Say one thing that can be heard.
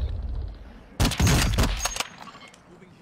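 A rifle shot booms with a rumbling echo.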